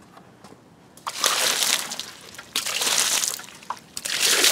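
A strong jet of water sprays and splashes against a car wheel.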